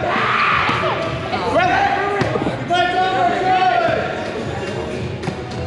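Players shout and call out in a large echoing gym.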